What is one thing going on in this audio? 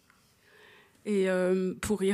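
A woman speaks into a microphone, heard through loudspeakers in a hall.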